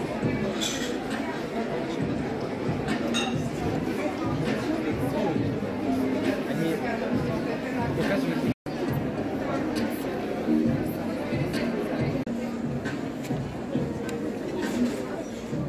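A crowd of men and women chatters all around in a large echoing hall.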